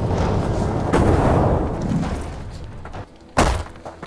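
Fire roars and crackles in a loud burst.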